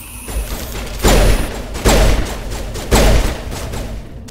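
Single heavy gunshots crack out.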